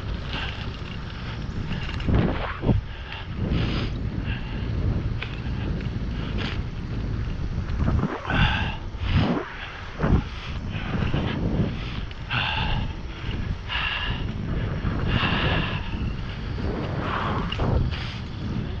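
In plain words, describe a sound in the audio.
Wind rumbles steadily while moving along outdoors.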